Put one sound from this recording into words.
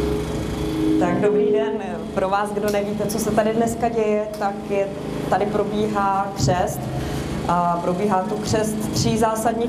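A young woman speaks calmly into a microphone through a loudspeaker.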